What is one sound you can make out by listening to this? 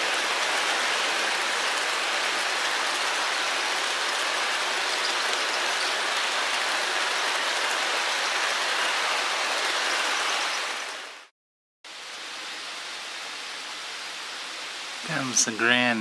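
A model train rolls along its track with a steady whirring rattle.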